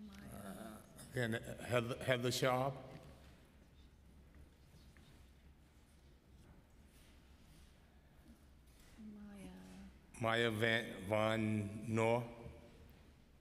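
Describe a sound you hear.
A man speaks into a microphone in a calm, deep voice.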